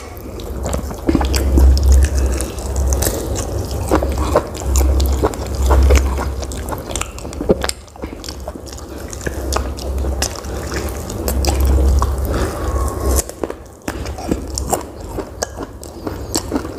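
Crispy food crunches and crackles as a man bites into it.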